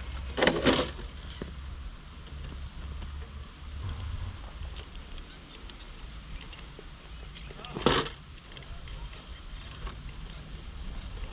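Rubber tyres scrape and crunch over rock.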